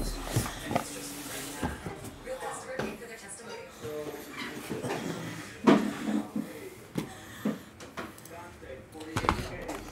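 A cardboard box scrapes and bumps on a table.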